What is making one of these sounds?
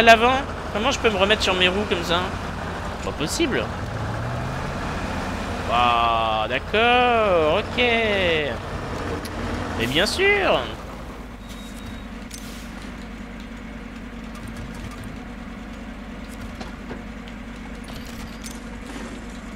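A truck engine rumbles low and steadily.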